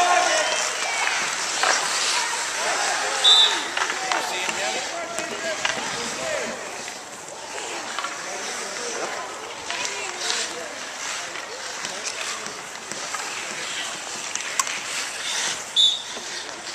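Young players shout to each other across an outdoor rink.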